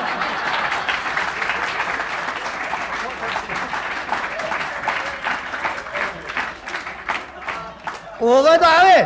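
A crowd claps along in rapid bursts.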